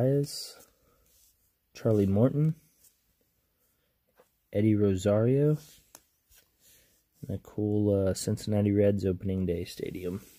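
Trading cards rustle and flick between fingers.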